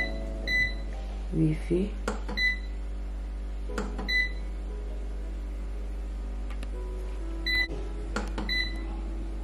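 An appliance gives short electronic beeps.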